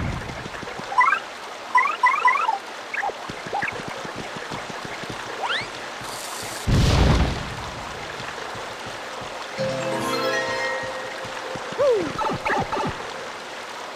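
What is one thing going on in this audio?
Short cartoonish chirps and blips from a video game sound in quick bursts.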